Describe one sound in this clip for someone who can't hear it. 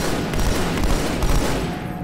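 An energy blast crackles and zaps.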